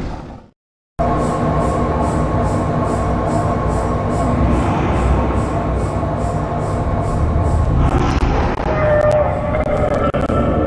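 A large machine drones and grinds steadily.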